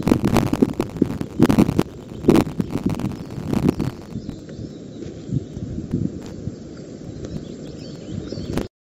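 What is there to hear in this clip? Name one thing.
Twigs in a nest rustle and crackle as large birds shift about.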